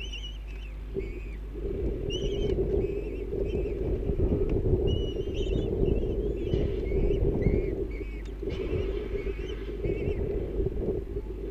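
Young birds chirp and peep in short, repeated calls.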